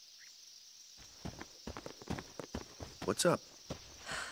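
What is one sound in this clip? Footsteps tread on a stone path.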